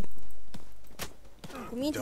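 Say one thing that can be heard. A punch lands with a thud.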